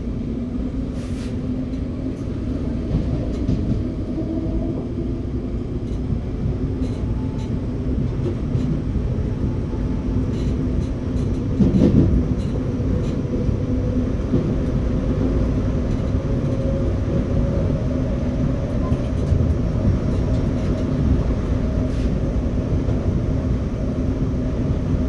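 Train wheels clatter over rail joints.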